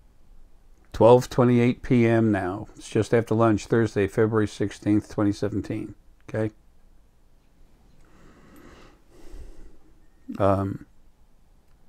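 An older man speaks calmly and close to a microphone.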